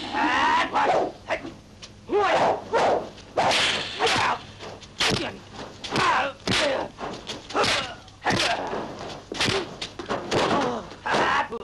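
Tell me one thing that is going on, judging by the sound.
Punches and kicks land with loud thuds and whooshes.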